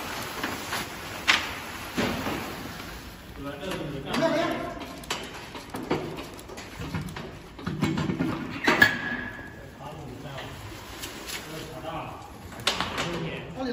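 Metal clanks and knocks as a heavy paper roll is moved onto a machine shaft.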